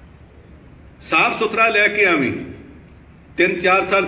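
An elderly man speaks slowly into a microphone, heard through a loudspeaker in a large room.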